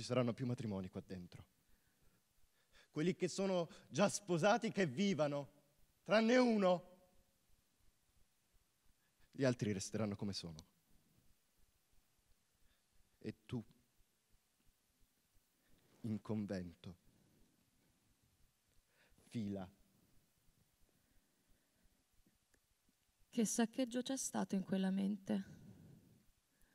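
A woman speaks calmly into a microphone in a large hall, with long pauses between phrases.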